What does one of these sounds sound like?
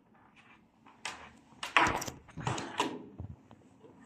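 A small plastic connector clicks into place.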